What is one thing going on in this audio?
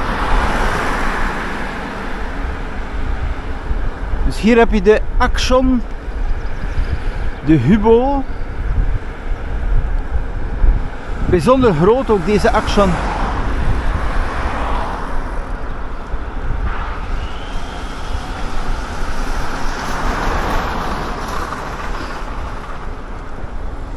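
Wind buffets and rumbles steadily outdoors.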